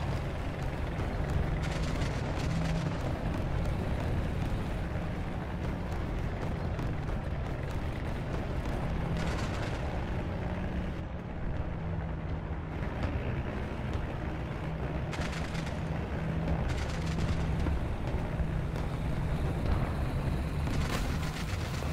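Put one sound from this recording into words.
A tank engine rumbles steadily at idle.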